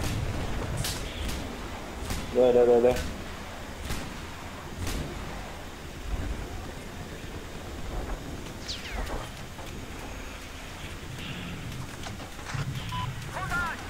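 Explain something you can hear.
Explosions boom in the distance, one after another.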